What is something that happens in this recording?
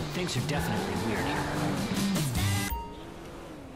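A car engine hums as a car rolls to a stop.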